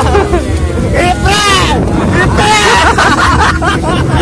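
An older man laughs heartily close by.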